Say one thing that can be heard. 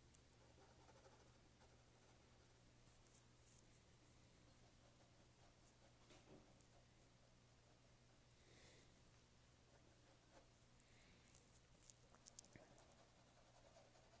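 A pencil softly scratches and shades on paper.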